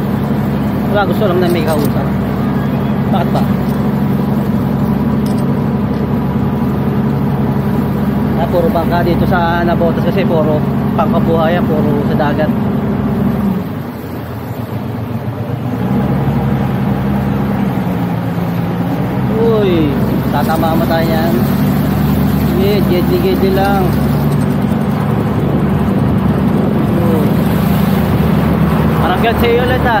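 A boat engine drones steadily, briefly easing off and picking up again.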